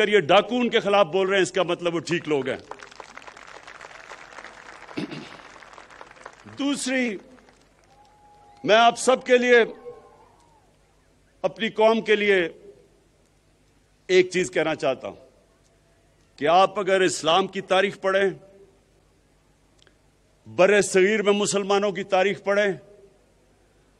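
A man gives a speech into a microphone over loudspeakers, in bursts with pauses between them.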